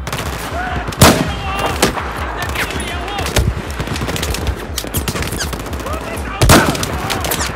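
A sniper rifle fires single loud shots.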